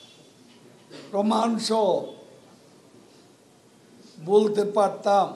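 An elderly man speaks into microphones in short, forceful bursts with long pauses.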